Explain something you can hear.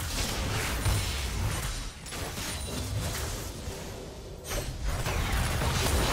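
Magic blasts and weapon strikes clash in a video game battle.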